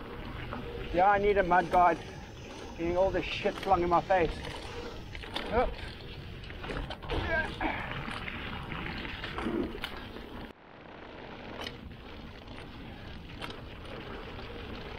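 A bicycle rattles over bumps.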